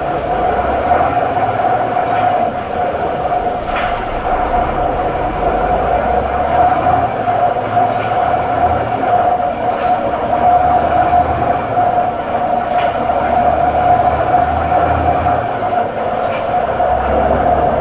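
A simulated truck diesel engine drones as the truck pulls away.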